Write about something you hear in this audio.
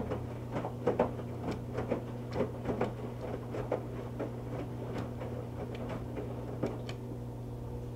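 Wet laundry sloshes and thumps inside a washing machine drum.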